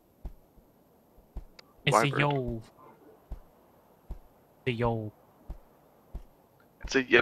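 Footsteps thud softly on hard ground at an uneven pace.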